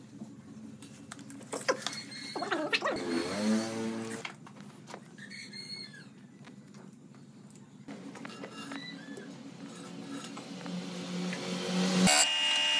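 A lathe motor hums and whirs steadily.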